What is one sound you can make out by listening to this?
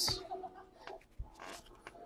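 A stack of trading cards rustles and slides between fingers.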